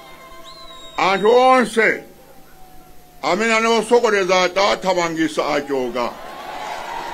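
A man speaks loudly and forcefully into a microphone over a public address system, outdoors.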